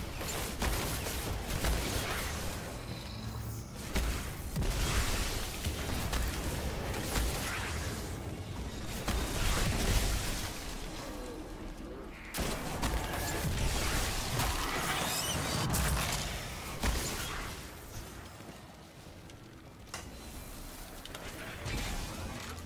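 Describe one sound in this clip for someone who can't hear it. Gunfire and blasts from a game crackle and boom.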